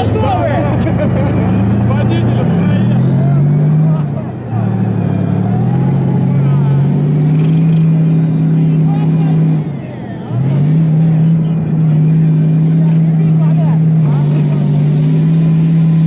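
A high turbine whine slowly rises in pitch.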